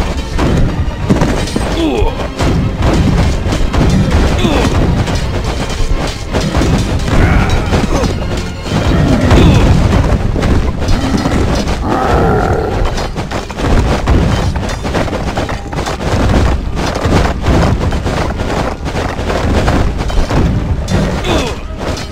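Weapons clash and thud in a crowded game battle.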